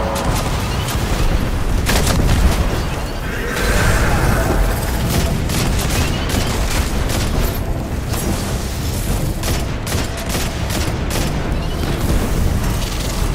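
Energy blasts crackle and explode.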